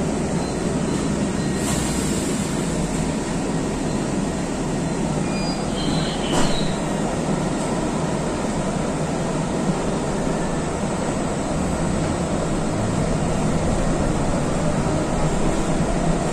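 A vehicle rumbles steadily along a road, heard from inside.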